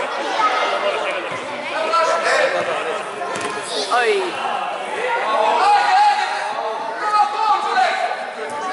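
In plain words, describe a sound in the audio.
Children shout and call out in a large echoing hall.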